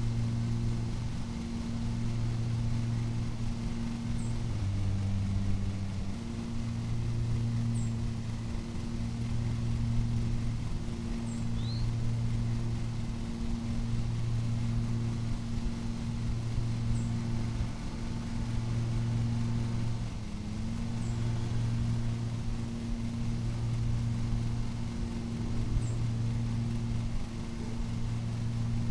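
A ride-on mower engine hums steadily.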